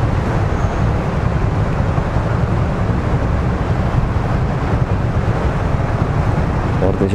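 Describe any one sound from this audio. A motorcycle engine idles close by with a low rumble.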